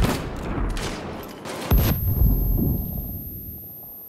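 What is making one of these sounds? A grenade explodes with a loud bang.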